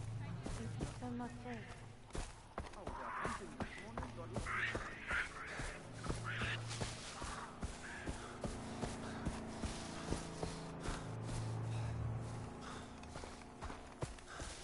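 Footsteps crunch steadily over grass and a dirt path.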